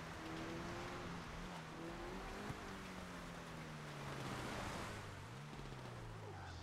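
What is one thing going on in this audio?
Tyres crunch and rumble over a dirt road.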